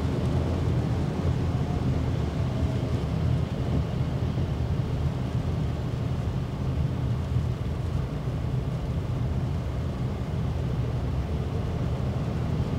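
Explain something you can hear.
Tyres hiss on a wet road.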